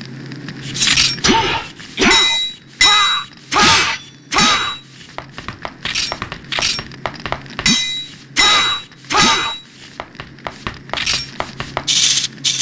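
Swords clash with ringing metallic clangs.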